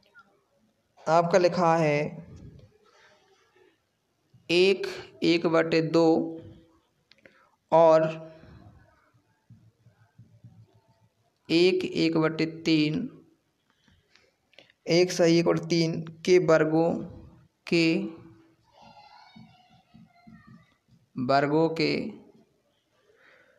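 A young man speaks calmly into a headset microphone, in short phrases with pauses.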